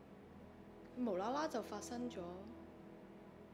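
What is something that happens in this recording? A second young woman speaks calmly close by.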